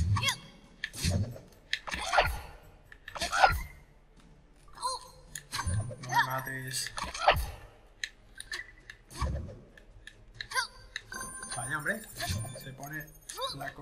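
Cartoon creatures squawk and pop as they are hit.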